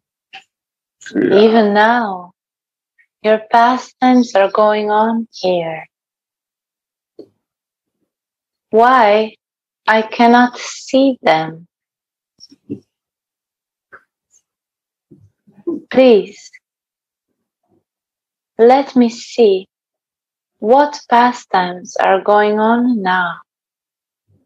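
A young woman recites in a sing-song voice through an online call.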